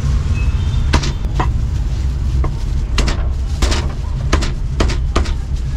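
A cleaver chops through meat onto a wooden block with sharp knocks.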